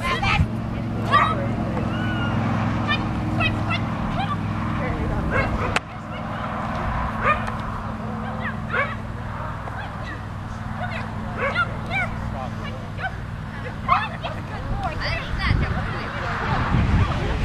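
A woman calls out short, eager commands to a dog outdoors.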